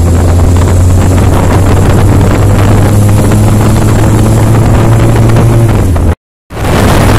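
A motorcycle engine idles with a steady low hum.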